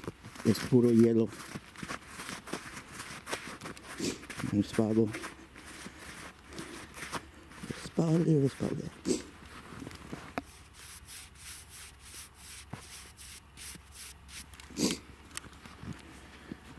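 Boots crunch through deep snow with steady footsteps.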